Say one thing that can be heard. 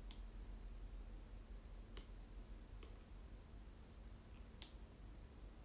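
A pen taps lightly on a tablet.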